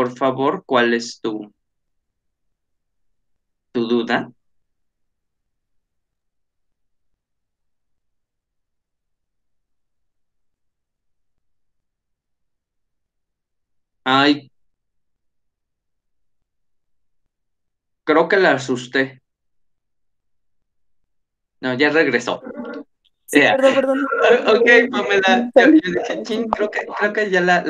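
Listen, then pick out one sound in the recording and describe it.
A man speaks calmly through an online call, in short bursts with long pauses.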